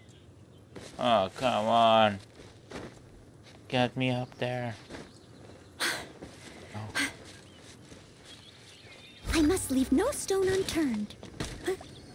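A young man talks casually, close up.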